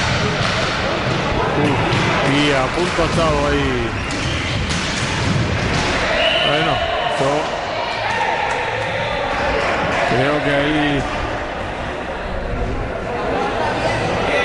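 Skate wheels roll and rumble across a wooden floor in a large echoing hall.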